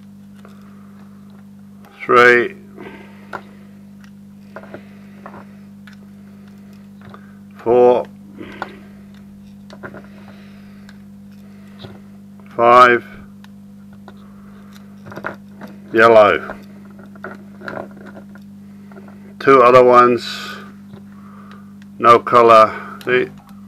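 Small metal connectors click and tap as they are handled.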